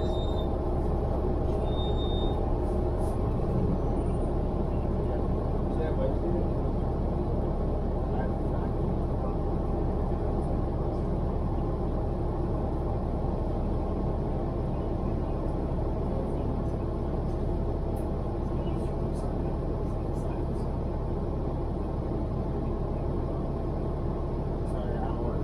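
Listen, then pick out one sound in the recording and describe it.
A car engine idles with a steady low rumble.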